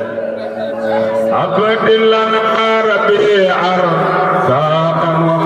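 An elderly man chants in a long, drawn-out melodic voice through a microphone and loudspeakers.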